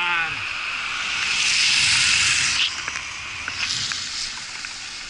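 A car drives past and fades away.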